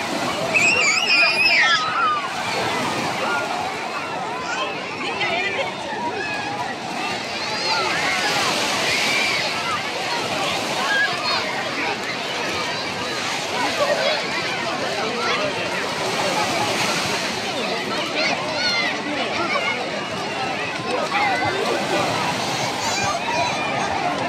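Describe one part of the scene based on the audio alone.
A crowd of children and adults chatter and shout on a busy beach.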